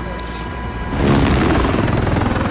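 Rushing wind roars loudly outdoors.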